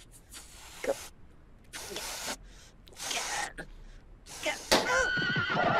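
A balloon inflates with bursts of rushing air.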